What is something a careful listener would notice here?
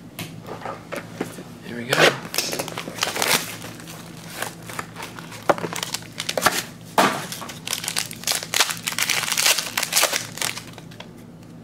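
A foil wrapper crinkles and rustles as it is handled and torn open.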